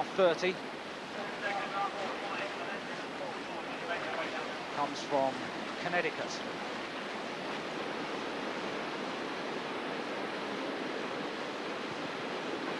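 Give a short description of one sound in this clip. Whitewater rushes and churns steadily.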